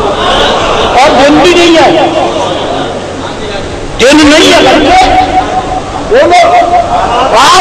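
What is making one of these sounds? An elderly man preaches forcefully through a microphone and loudspeakers, his voice echoing.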